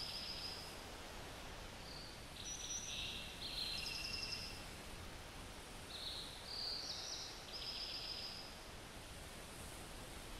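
A moose steps slowly through leaves and undergrowth.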